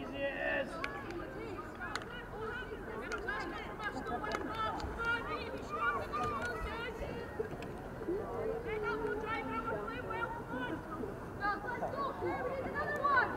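Young women players shout and call to each other outdoors.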